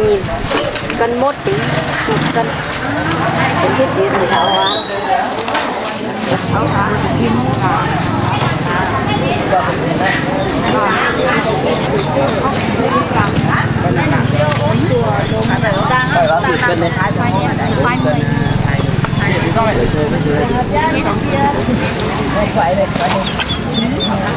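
A plastic bag rustles as items are handled.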